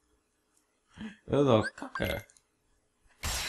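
A game menu chimes as an option is picked.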